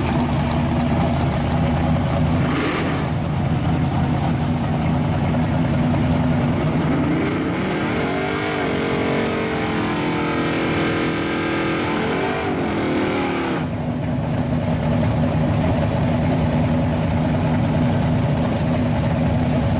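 A big engine idles loudly with a deep, rough rumble.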